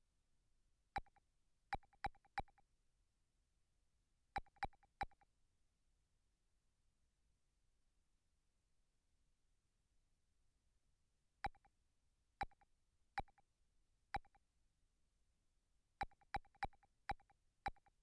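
Short electronic menu blips tick in quick bursts.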